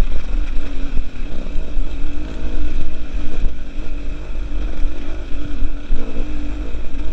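A two-stroke enduro motorcycle revs up and down.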